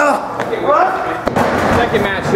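A body thuds against the edge of a wrestling ring.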